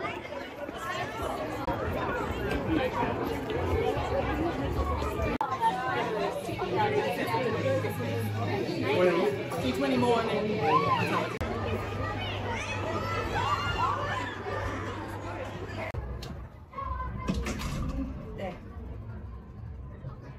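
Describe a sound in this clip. Children chatter and call out in a lively crowd.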